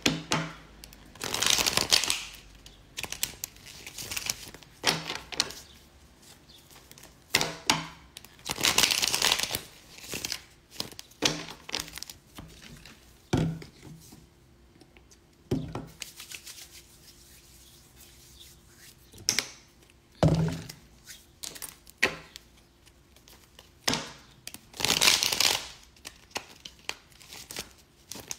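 Paper bills rustle and flip as a young woman counts them.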